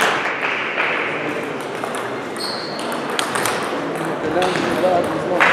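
A table tennis ball clicks sharply against paddles and the table in a large echoing hall.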